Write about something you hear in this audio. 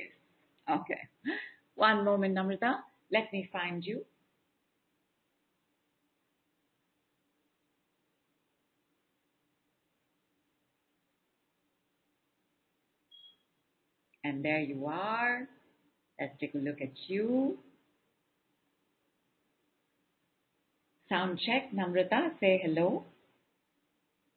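A woman speaks calmly into a microphone, with long pauses.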